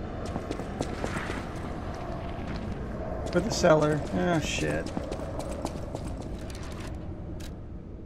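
Footsteps tap on a hard stone floor in an echoing hall.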